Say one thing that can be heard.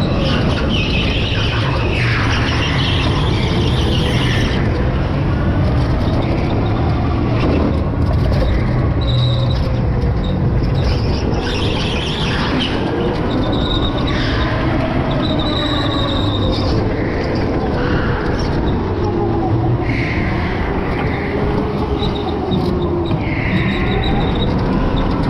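A go-kart engine whines steadily up close as it races.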